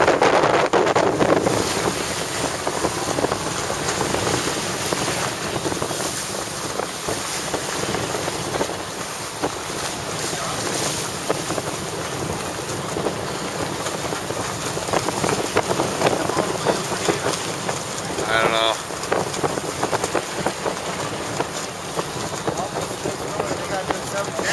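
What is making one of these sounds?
Waves splash and churn against a boat's hull.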